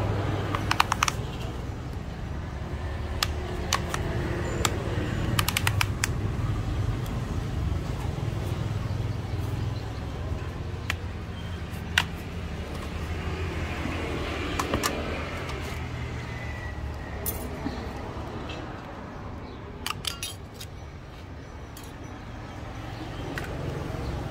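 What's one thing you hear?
A plastic tablet casing clicks and taps softly as hands handle it.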